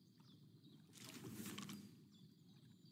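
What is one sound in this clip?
A fishing rod swishes as a line is cast out.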